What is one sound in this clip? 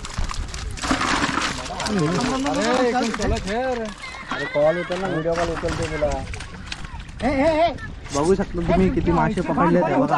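Fish flap and splash in a plastic tub.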